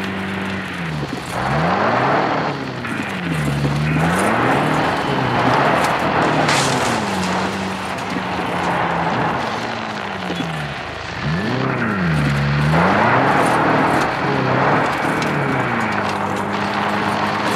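Tyres crunch over a rough dirt track.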